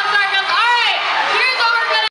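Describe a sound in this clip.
A young woman speaks through a microphone over loudspeakers.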